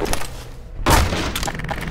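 A crowbar smashes a wooden crate.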